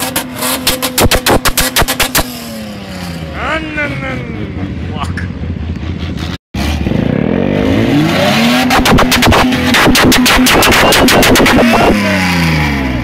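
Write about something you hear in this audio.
An SUV engine revs on sand.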